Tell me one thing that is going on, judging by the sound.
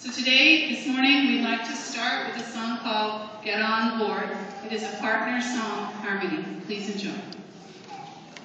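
A woman speaks through a microphone over loudspeakers in a large echoing hall.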